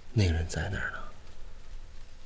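A young woman speaks quietly and tearfully.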